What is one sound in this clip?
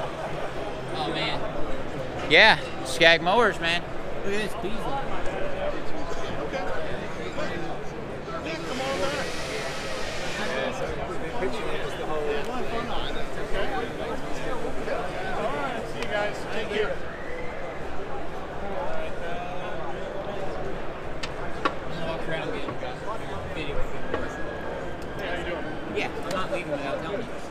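A crowd murmurs throughout in a large echoing hall.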